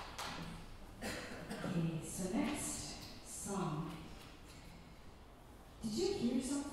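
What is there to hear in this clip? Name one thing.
A woman speaks calmly through a microphone into a hall.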